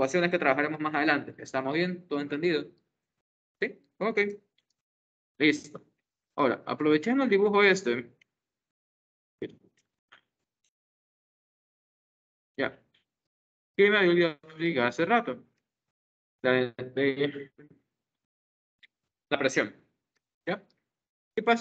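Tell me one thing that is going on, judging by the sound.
A young man speaks calmly through an online call microphone, in short bursts with pauses.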